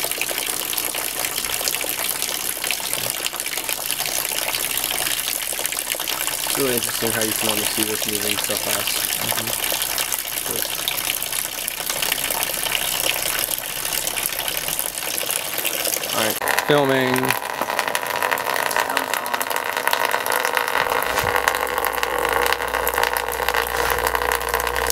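Water pours and splashes steadily.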